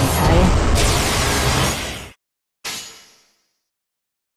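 Loud magical attack effects whoosh and crash, then cut off.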